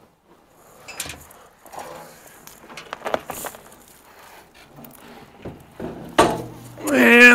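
Metal parts clunk and rattle.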